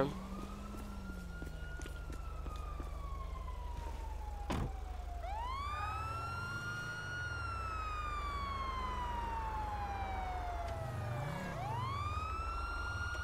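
A siren wails, rising and falling in long sweeps.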